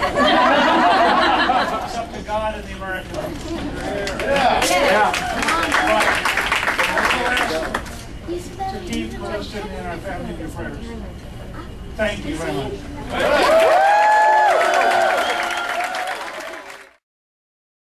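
A crowd chatters and cheers in a crowded room.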